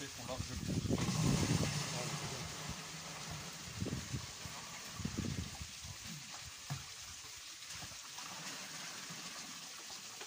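Water splashes as it is poured from a bucket into a bin.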